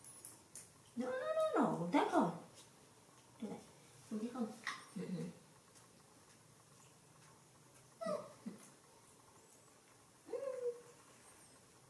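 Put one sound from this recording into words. A young woman talks softly and playfully close by.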